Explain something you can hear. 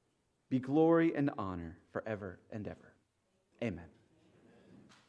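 A man speaks solemnly into a microphone in an echoing room.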